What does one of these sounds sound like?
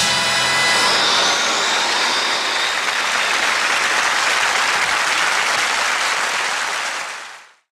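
A rock band plays loudly through amplifiers, ending in a long crashing wash that fades away.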